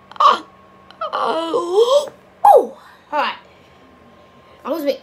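A young man exclaims with animation close to a microphone.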